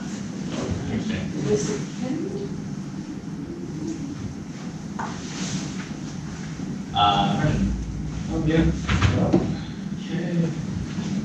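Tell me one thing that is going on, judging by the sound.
Several young men and women talk at once in a room that echoes a little.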